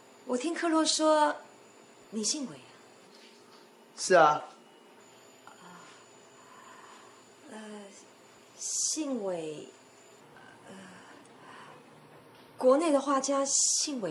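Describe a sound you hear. A woman speaks calmly up close.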